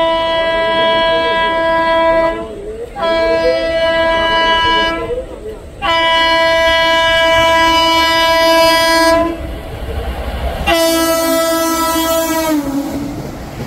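A train horn blares loudly in long blasts as a train approaches.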